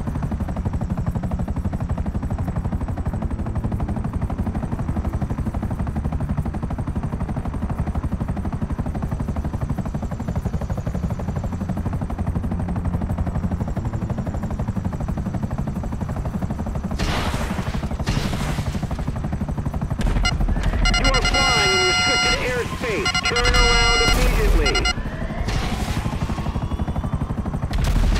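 A helicopter's rotor thumps and its engine drones steadily from inside the cabin.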